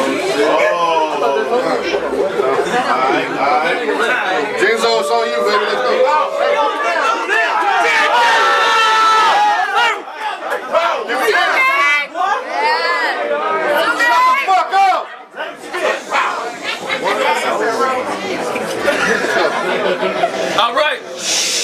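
Young men rap loudly and with energy at close range.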